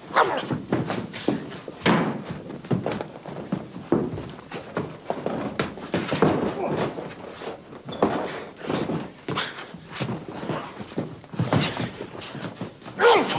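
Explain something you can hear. Two men grunt and strain as they struggle.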